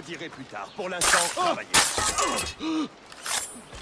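Blows land in a brief scuffle.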